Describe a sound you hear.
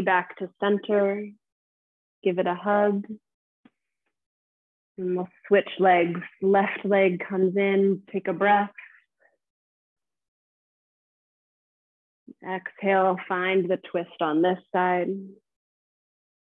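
A woman speaks calmly and clearly through a close microphone.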